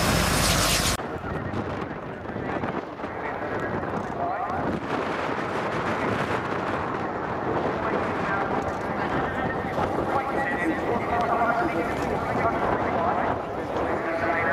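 Jet aircraft roar steadily overhead in the distance.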